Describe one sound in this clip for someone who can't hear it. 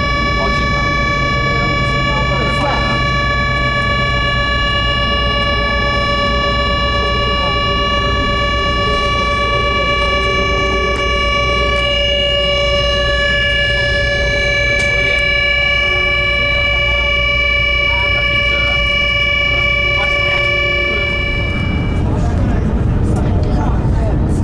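A high-speed train rumbles along the rails, heard from inside the carriage.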